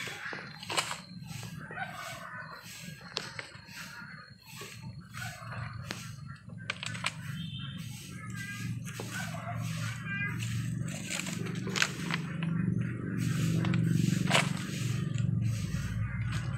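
Soil crunches and rustles as a hand scoops it.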